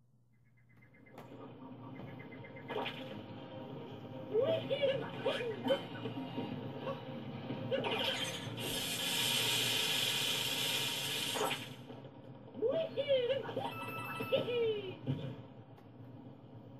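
Game music plays through a television speaker.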